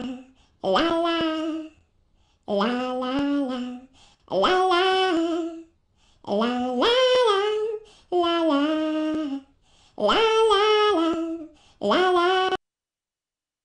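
A young woman sings a cheerful melody in short phrases, close to a microphone.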